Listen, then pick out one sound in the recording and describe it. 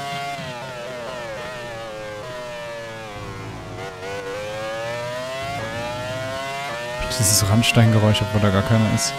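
A racing car engine whines loudly, its pitch dropping on braking and rising through the gears.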